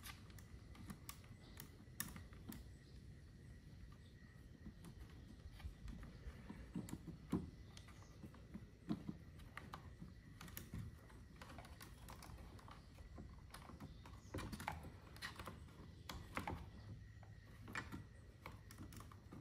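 Small plastic parts click and rattle as hands work on them.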